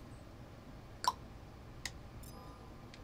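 A food can pops open with a short metallic click.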